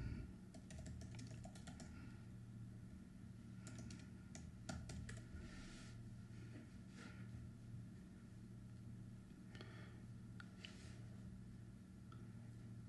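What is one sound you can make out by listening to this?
A man talks calmly and closely into a microphone.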